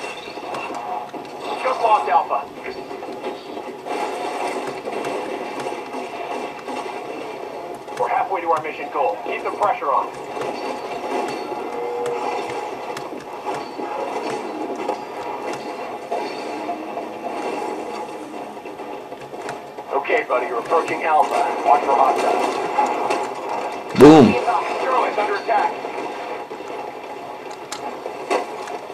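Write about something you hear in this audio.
Rapid gunfire rattles from a video game played through speakers.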